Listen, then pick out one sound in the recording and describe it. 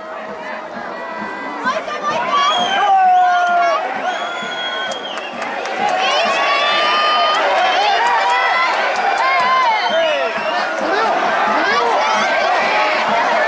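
Nearby young fans shout and sing with excitement.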